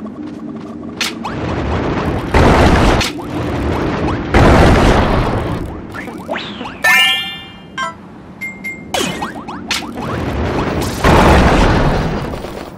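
Cartoon whooshes and blasts burst out during fighting.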